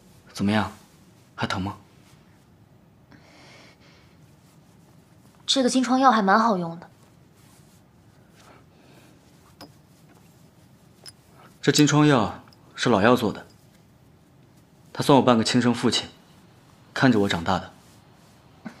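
A young woman speaks softly and calmly.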